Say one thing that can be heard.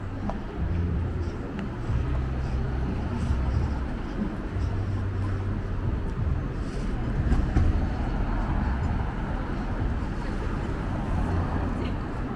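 Distant city traffic hums steadily.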